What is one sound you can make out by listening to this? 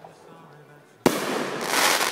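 A firework bursts with a loud bang.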